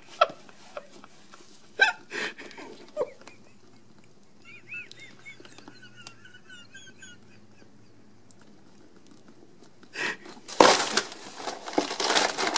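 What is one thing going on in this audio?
A plastic snack wrapper crinkles and rustles close by.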